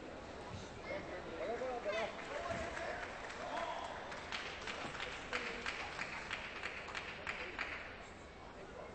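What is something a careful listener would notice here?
A large crowd claps and cheers in a big echoing hall.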